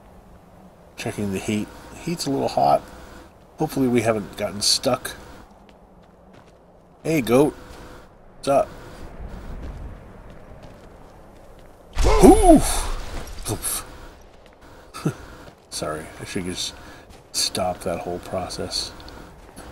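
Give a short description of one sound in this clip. A man talks with animation through a headset microphone, close by.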